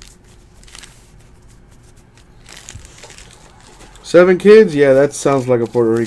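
Trading cards shuffle softly against each other.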